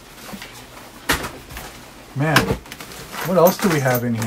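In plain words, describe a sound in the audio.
Cardboard rustles and scrapes as a box is rummaged through.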